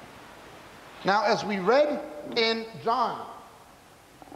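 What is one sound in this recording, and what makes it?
A man speaks with emphasis into a microphone.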